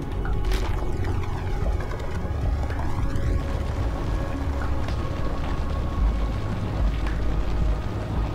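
Debris crashes and rattles in a loud explosion.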